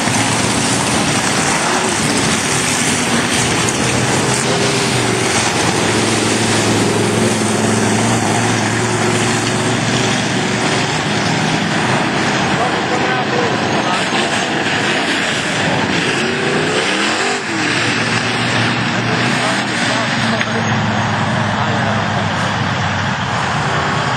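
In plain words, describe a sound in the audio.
Many race car engines roar loudly and distort.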